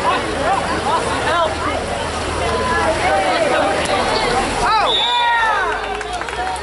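Water splashes as swimmers churn through a pool.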